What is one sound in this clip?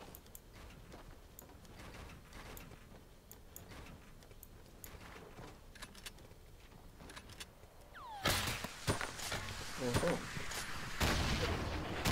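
Building pieces clack into place in quick succession.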